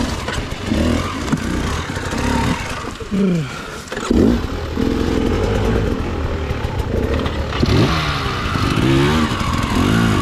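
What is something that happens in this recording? A dirt bike engine idles close by and revs up and down in short bursts.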